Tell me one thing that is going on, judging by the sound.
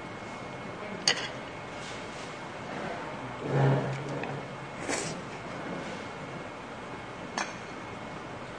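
Chopsticks clink against dishes.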